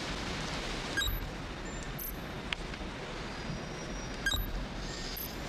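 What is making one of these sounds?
A touchscreen beeps with short electronic chirps as it is pressed.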